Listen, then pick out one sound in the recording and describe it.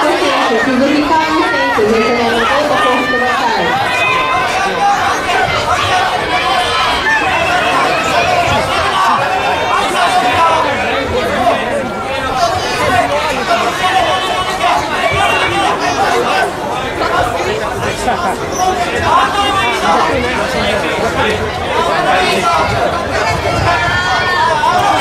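A crowd of spectators chatters and shouts throughout a large echoing hall.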